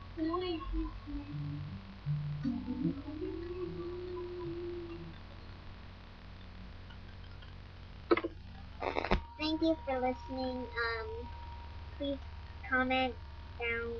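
A young girl talks softly close to the microphone, with pauses.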